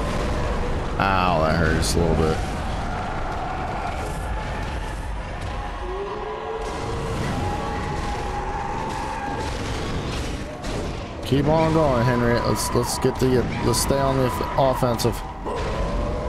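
A large beast shrieks and roars loudly.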